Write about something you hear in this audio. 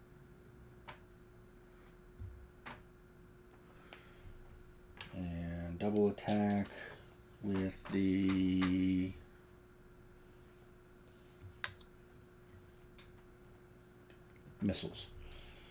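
Small plastic game pieces click and tap on a tabletop.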